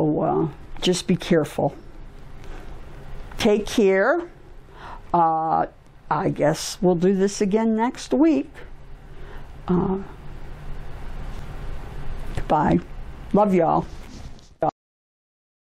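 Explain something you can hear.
An elderly woman speaks calmly and expressively into a close microphone.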